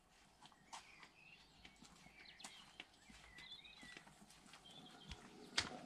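Footsteps brush through grass.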